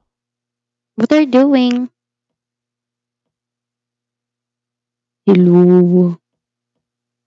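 A young girl speaks briefly into a close microphone, in short bursts.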